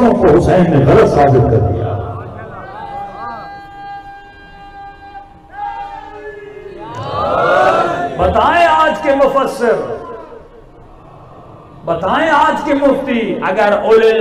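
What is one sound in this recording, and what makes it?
A man speaks passionately through a microphone, his voice rising and falling in a chanting tone.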